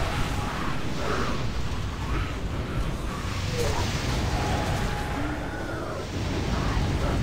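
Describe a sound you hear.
Spell effects and combat blasts crackle and boom in a game battle.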